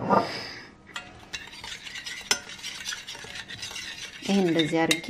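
A metal spoon scrapes and clinks against a glass bowl.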